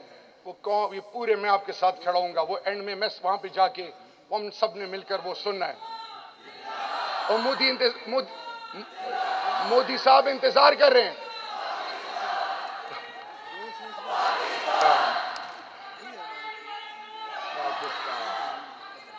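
A young man speaks forcefully into a microphone over loudspeakers in a large echoing hall.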